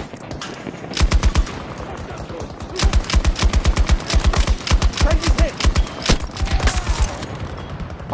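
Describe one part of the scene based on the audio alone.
A light machine gun fires rapid bursts.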